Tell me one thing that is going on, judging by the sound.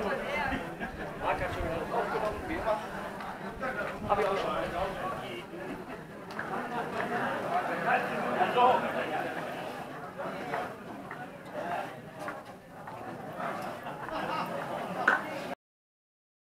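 A group of adults chatter and laugh nearby outdoors.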